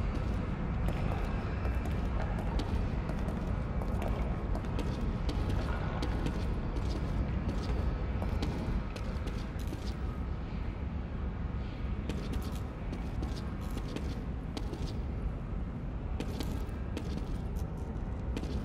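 Footsteps crunch on a rough, littered floor.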